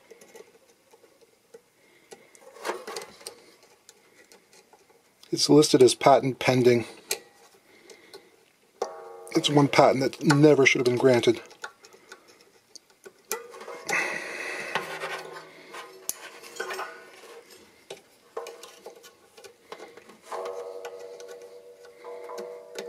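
A metal tool scrapes and clicks against taut strings.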